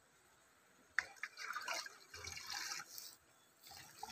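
Water pours from a can into a bucket.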